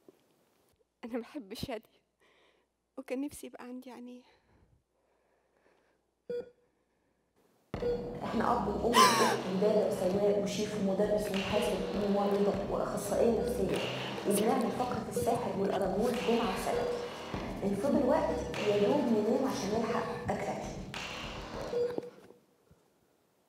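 A woman speaks expressively through a microphone in a large hall.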